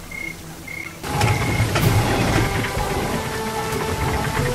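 Water gushes and splashes loudly.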